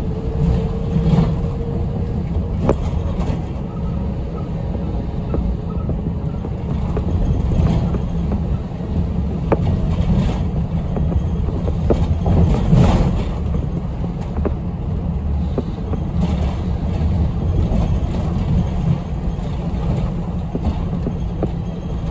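The bus interior rattles and knocks over bumps in the road.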